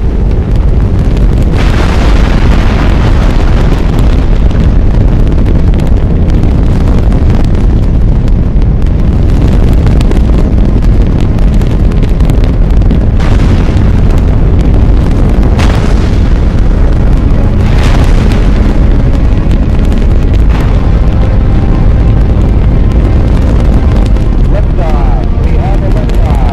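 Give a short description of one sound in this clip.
A Saturn V rocket's engines roar with a deep rumble at liftoff.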